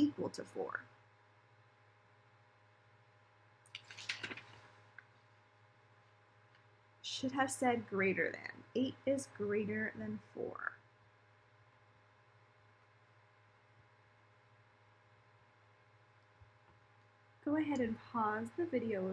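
A young woman speaks calmly and clearly close by, explaining in short bursts.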